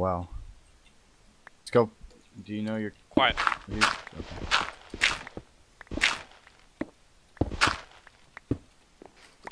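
Blocks of stone and dirt crunch as they are dug out, with short bursts.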